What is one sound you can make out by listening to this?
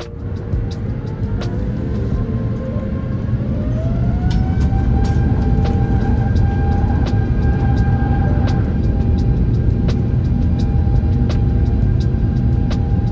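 Wheels thump rhythmically over runway joints.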